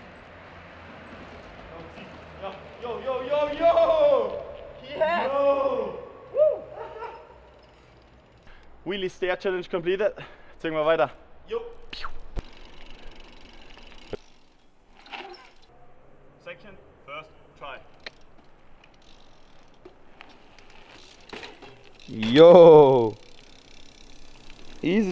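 A bicycle's tyres roll over pavement.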